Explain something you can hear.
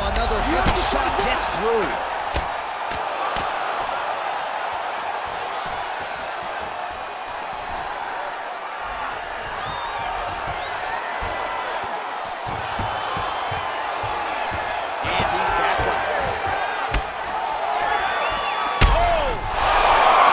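Punches thud against a body in quick blows.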